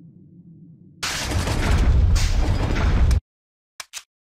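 A heavy metal door scrapes open with a loud rush.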